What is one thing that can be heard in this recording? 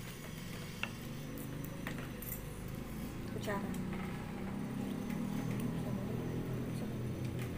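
Spoons and forks clink and scrape against plates.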